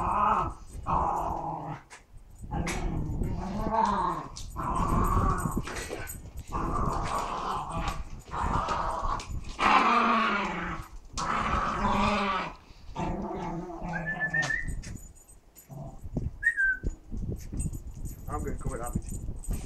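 Small dogs growl and snarl playfully up close.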